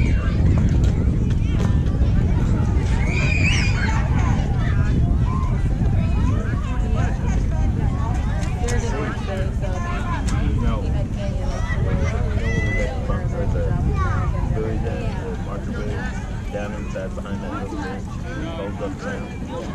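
Young girls call out and chatter across an open field.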